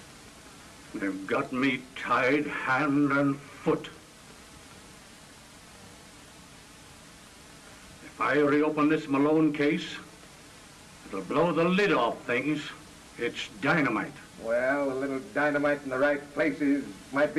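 An elderly man speaks into a telephone in a calm, firm voice.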